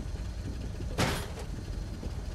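A metal workbench clanks down into place.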